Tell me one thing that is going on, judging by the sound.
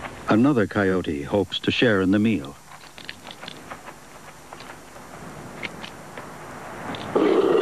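A coyote's paws rustle through dry grass.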